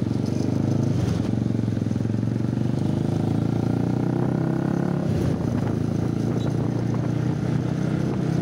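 Many motorbikes rumble nearby in traffic.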